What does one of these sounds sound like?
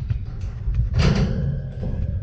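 A player kicks a football hard.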